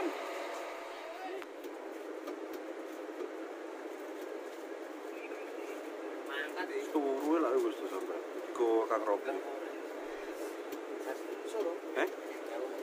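A bus engine hums steadily, heard from inside the cabin.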